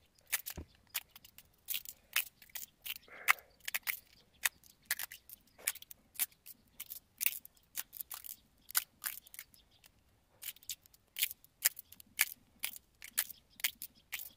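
Small metal parts click and tap close by.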